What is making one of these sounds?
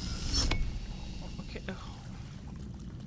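A metal gate creaks as it swings.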